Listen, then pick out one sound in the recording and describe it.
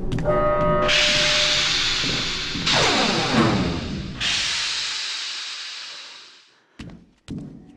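A metal lift cage rattles and crashes loudly as it drops.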